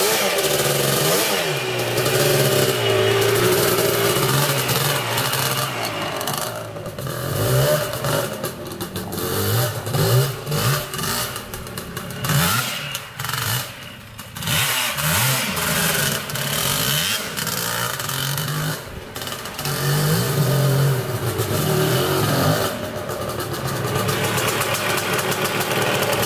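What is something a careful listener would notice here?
A quad bike engine revs and buzzes nearby, rising and falling in pitch.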